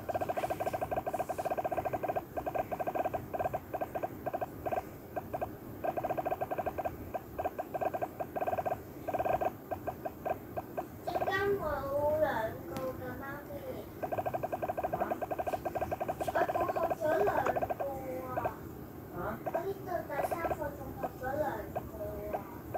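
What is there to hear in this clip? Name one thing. Rapid electronic pings ring out as balls bounce off blocks in a game.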